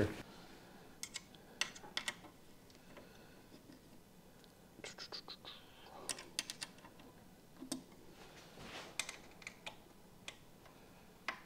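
Metal parts click and clack as hands adjust a router guide.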